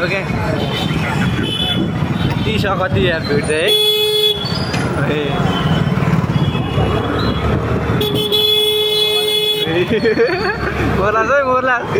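A crowd of men and women chatter all around.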